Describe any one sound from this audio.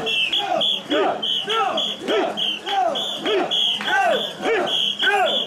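A crowd of men chants in rhythm outdoors.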